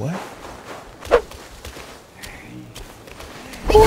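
A spear swishes through the air.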